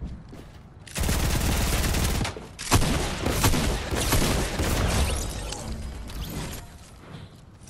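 Rapid gunshots crack in loud bursts.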